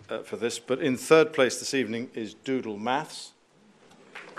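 A middle-aged man speaks calmly through a microphone.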